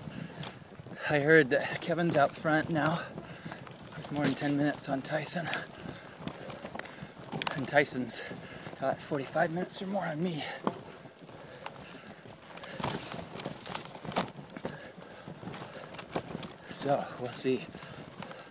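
A man talks casually, close to a microphone.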